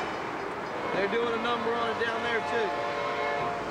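A diesel locomotive sounds its air horn.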